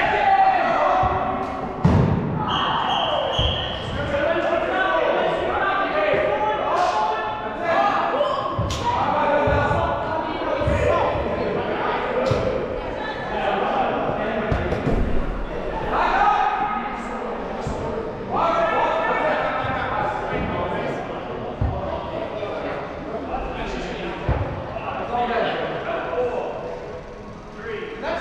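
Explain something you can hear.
Sneakers squeak on the floor.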